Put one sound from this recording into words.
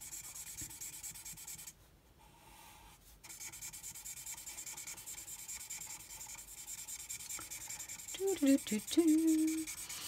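A marker tip taps rapidly and softly on paper.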